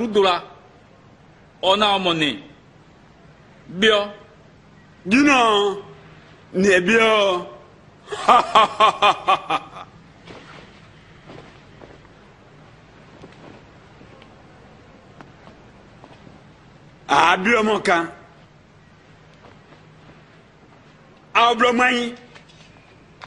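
A man speaks in short, forceful phrases with long pauses between them.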